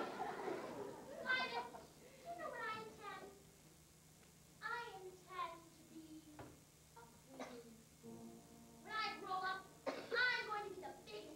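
A young woman speaks with animation on a stage, heard from the audience in a hall.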